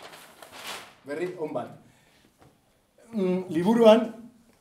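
A man speaks clearly and calmly.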